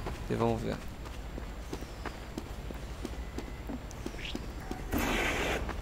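Footsteps thud on a hard floor at a brisk, steady pace.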